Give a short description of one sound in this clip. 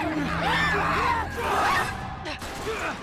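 A man shouts sharply.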